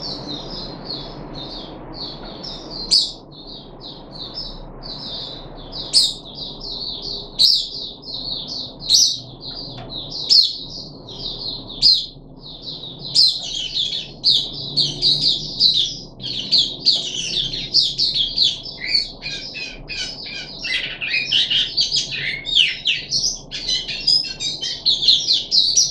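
A small bird chirps and trills rapidly and continuously, close by.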